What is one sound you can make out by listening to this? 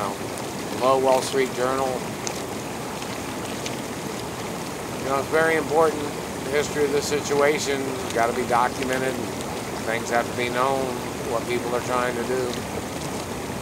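A middle-aged man speaks close by in short bursts.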